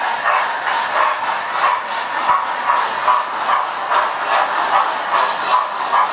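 A model train rumbles steadily along the track, its wheels clicking over the rail joints in a quick rhythm.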